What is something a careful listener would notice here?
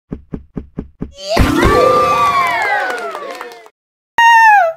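A short bright electronic jingle plays.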